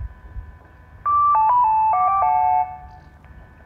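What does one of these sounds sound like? A loudspeaker plays a short descending chime melody.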